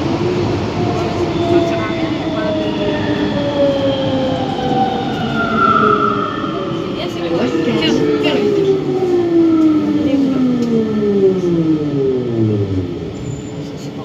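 An electric metro's motors whine and fall in pitch as the train slows into a station.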